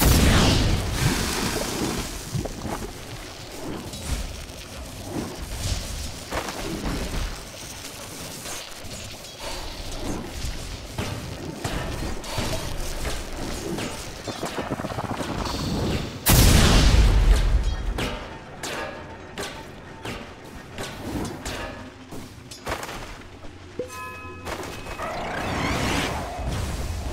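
Magic spells crackle and burst during a game battle.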